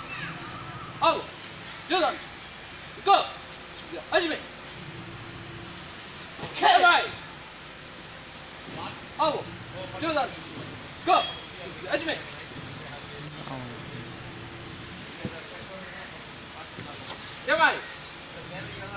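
A young man shouts sharply and loudly outdoors.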